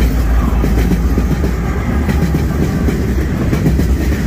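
A diesel locomotive engine roars loudly as it passes.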